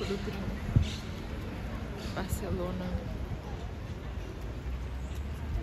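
A crowd of people chatters at a distance outdoors.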